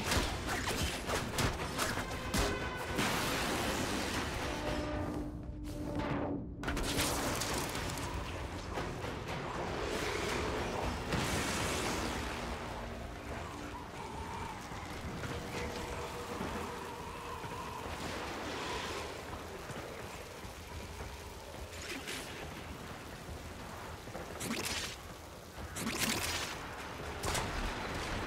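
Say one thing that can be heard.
Gunfire and blasts crackle in quick bursts.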